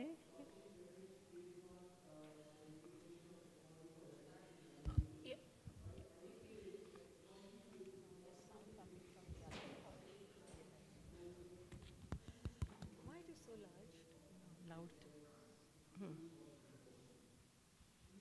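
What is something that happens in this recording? A woman speaks calmly into a microphone over loudspeakers in a large hall.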